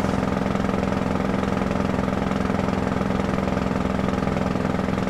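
A truck engine hums steadily as the truck drives along.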